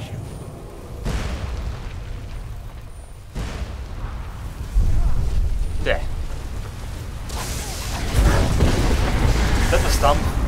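Fiery blasts explode with deep booms.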